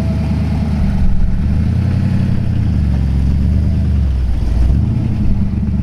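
An old car's engine revs briefly.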